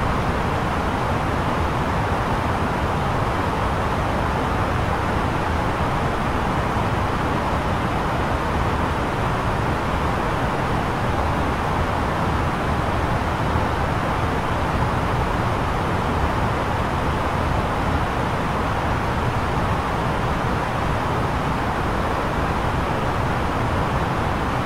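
Air rushes in the cockpit of an A320neo airliner in cruise.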